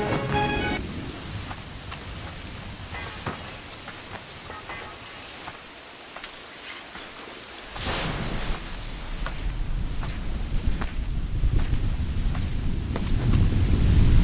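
Footsteps walk on wet ground.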